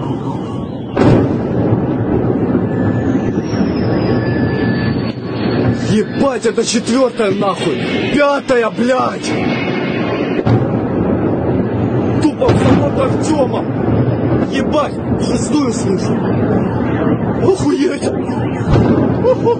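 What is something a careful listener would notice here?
Loud explosions boom one after another.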